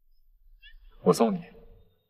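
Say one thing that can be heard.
A young man speaks softly nearby.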